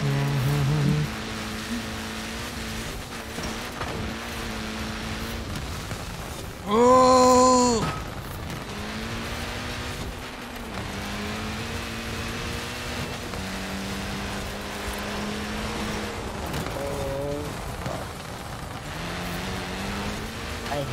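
A rally car engine roars and revs at high speed.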